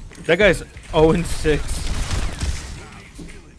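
Energy weapons fire in rapid blasts.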